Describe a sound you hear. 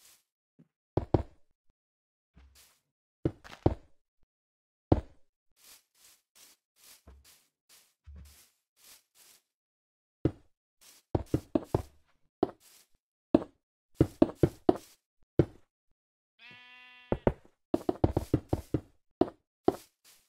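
Stone blocks are set down with dull knocks.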